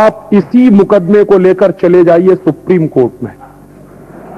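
A man speaks forcefully into a microphone, heard over a loudspeaker in an echoing hall.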